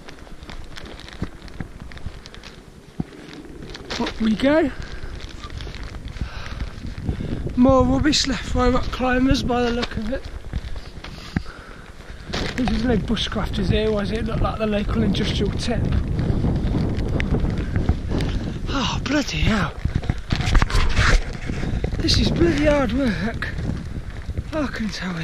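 Wind gusts and rumbles loudly outdoors.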